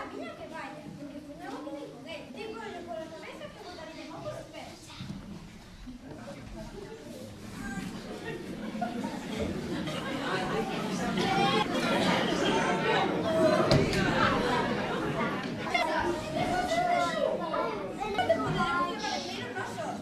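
A young girl speaks on a stage, heard through a microphone in an echoing hall.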